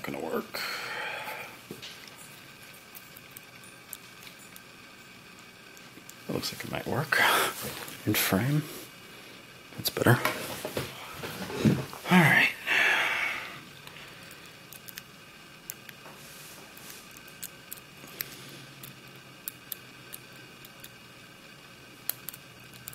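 Small metal picks scrape and click inside a lock.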